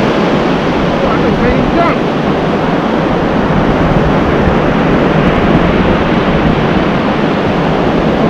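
Wind blows hard into the microphone.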